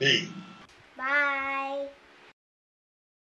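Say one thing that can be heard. A girl talks cheerfully.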